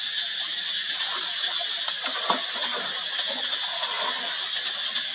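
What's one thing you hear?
A monkey splashes loudly into water.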